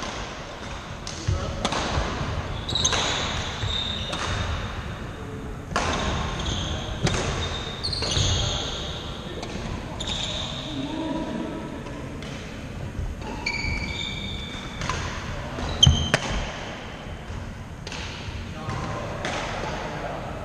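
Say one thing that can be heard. Shuttlecocks are struck with rackets, with sharp pops echoing in a large hall.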